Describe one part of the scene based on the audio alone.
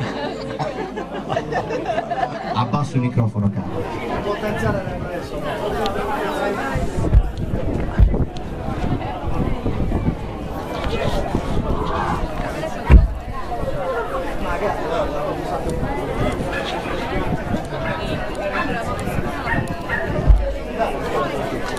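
A young woman sings into a microphone over loudspeakers.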